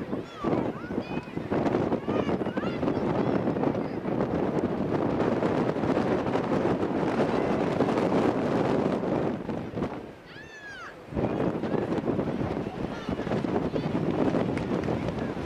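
Young women shout to each other outdoors on a playing field.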